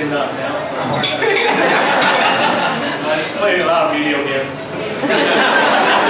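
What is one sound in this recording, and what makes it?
A young man laughs nearby.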